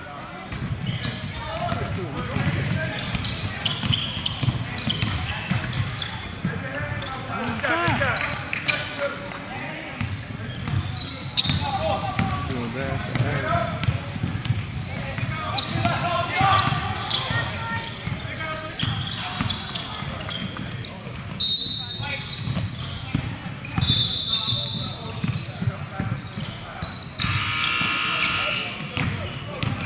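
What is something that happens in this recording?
A crowd of spectators and players chatter and call out in an echoing hall.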